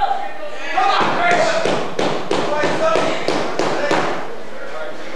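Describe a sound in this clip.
Boots thump on a springy ring mat.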